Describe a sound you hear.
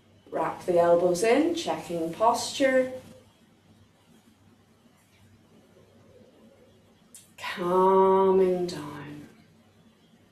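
A woman speaks calmly and clearly, close by.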